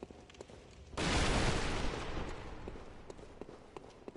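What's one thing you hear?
A loud rushing whoosh bursts out and fades.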